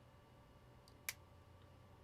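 A small plastic part snaps off with a click.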